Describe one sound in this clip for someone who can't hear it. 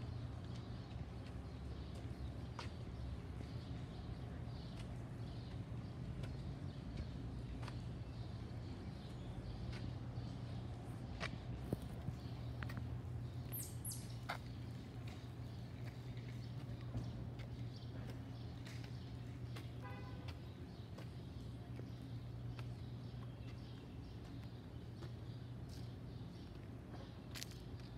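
Footsteps tread steadily on a paved path.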